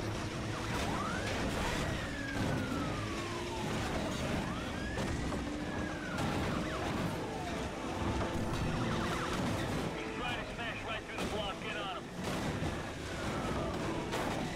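A racing car engine roars loudly at high speed.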